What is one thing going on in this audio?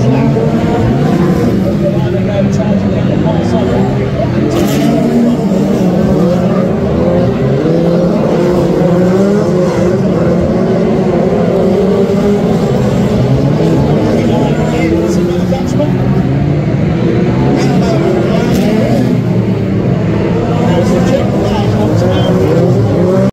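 Racing car engines roar and rev loudly outdoors.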